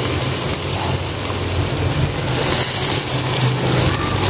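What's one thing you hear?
Chopped vegetables tumble into a pan with a soft clatter.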